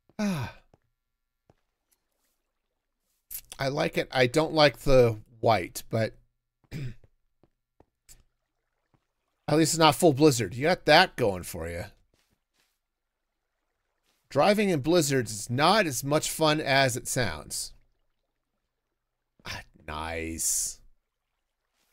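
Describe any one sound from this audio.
A man talks calmly into a close microphone, in bursts with pauses.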